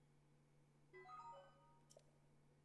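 A soft electronic chime sounds.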